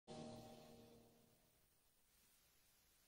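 A long-necked lute strikes a chord that rings out and slowly fades.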